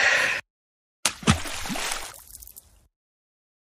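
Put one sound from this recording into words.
Water splashes loudly as someone plunges into a pool.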